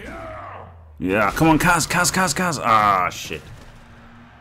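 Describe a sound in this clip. A heavy tackle lands with a loud thud and crunch.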